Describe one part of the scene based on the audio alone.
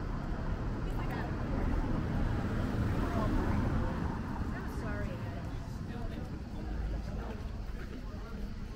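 Women talk casually nearby.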